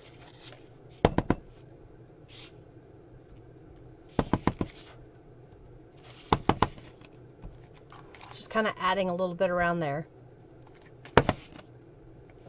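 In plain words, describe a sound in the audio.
Paper cards tap and rustle on a table.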